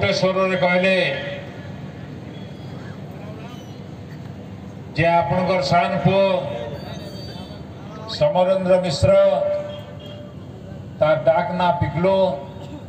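An elderly man speaks calmly into a microphone, heard through loudspeakers in bursts with pauses.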